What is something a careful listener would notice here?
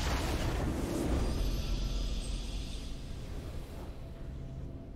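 A triumphant game fanfare swells and fades.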